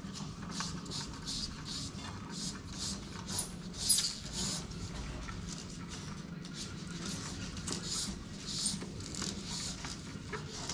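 A handheld air tool hisses in short, repeated bursts close by.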